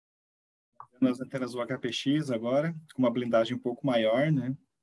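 A younger man speaks with animation over an online call.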